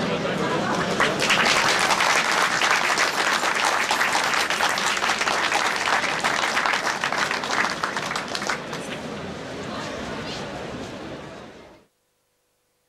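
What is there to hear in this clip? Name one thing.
An audience applauds with steady clapping.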